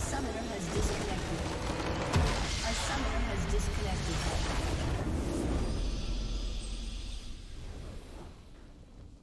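A base structure explodes with a loud rumbling blast.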